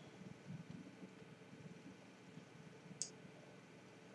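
A glass clinks softly as it is lifted off a table.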